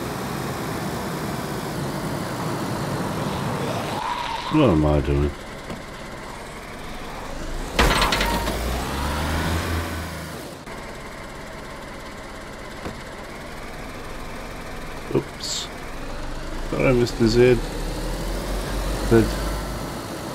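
A car engine hums and revs while driving over rough ground.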